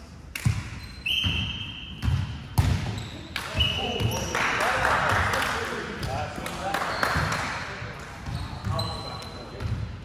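Sneakers squeak on a wooden floor.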